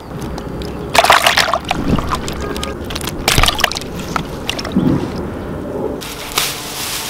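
Live catfish thrash and splash in a basin of water.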